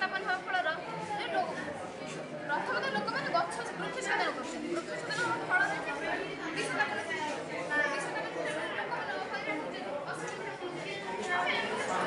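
Several children chatter in the background.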